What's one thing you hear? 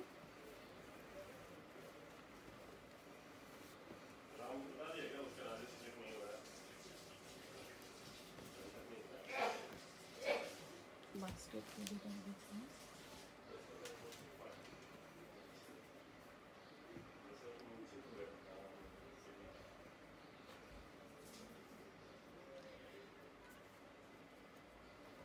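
Cloth rustles and swishes as clothes are shaken and folded.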